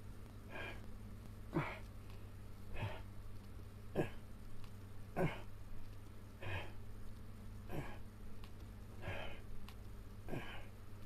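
A man grunts sharply with each sit-up, in a steady rhythm, close by.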